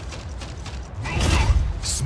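A robot's gun fires.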